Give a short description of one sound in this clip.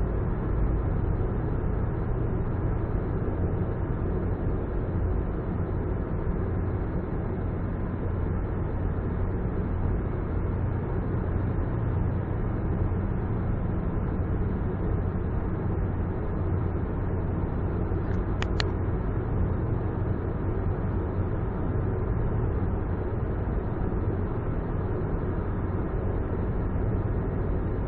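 A car's engine hums and its tyres roar steadily on the road, echoing in a tunnel.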